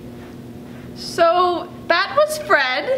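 A young woman speaks with high, strained emotion close by, almost wailing.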